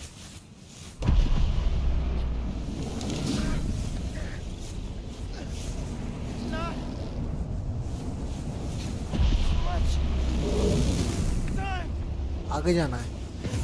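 A deep rumbling boom swells and rolls on.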